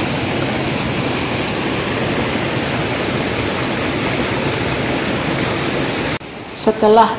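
A waterfall rushes and splashes loudly.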